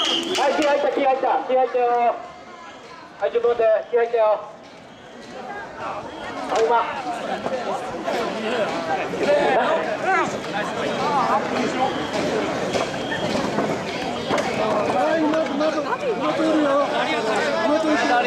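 A crowd of men chant loudly in rhythm close by.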